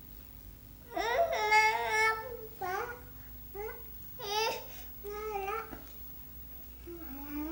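A young child babbles and squeals loudly up close.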